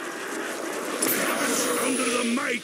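A ray gun fires with a sharp electric zap.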